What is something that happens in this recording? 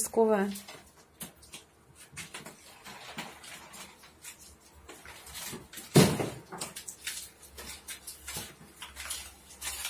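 Plaster and brick crack and knock as a wall is pulled apart.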